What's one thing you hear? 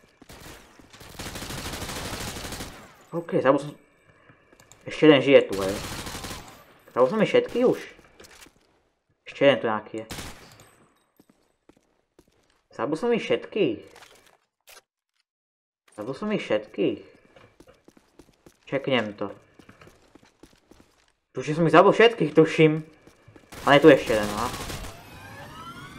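Rapid gunshots ring out.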